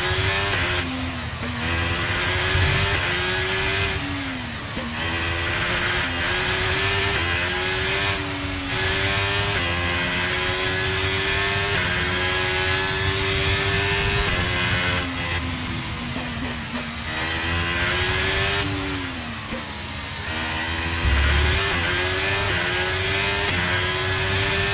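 A racing car engine screams at high revs, rising through the gears and dropping sharply when braking.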